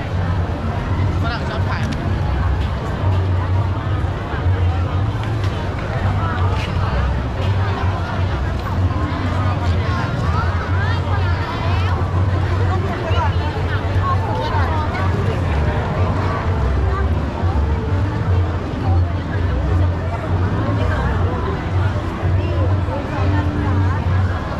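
A dense crowd of men and women chatters all around, close by.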